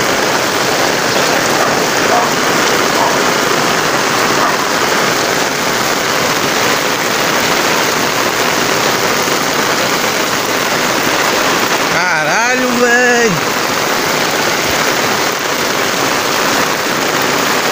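Heavy rain pours steadily onto a flooded street.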